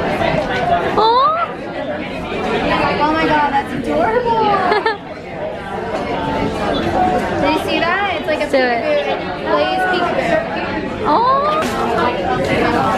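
A young woman exclaims with excitement close by.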